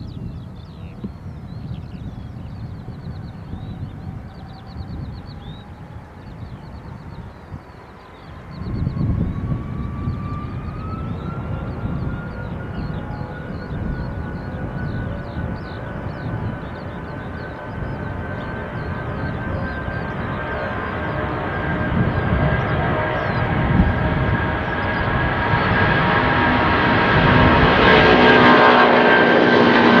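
A jet airliner's engines whine steadily, rising in pitch and growing louder.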